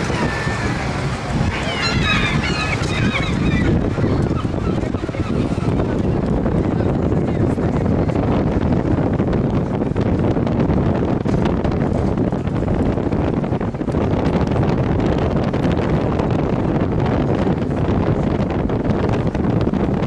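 Wind rumbles across the microphone.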